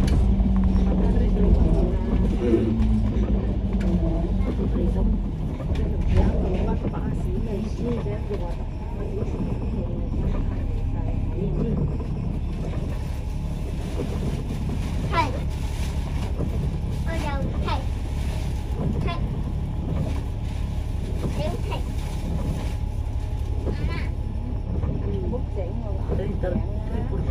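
A bus engine rumbles steadily from inside the vehicle.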